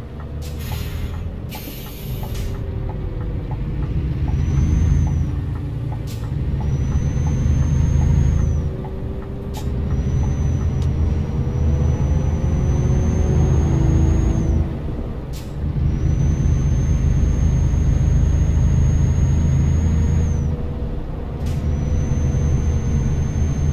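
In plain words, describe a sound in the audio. A truck engine rumbles steadily, dropping briefly now and then as the truck changes gear.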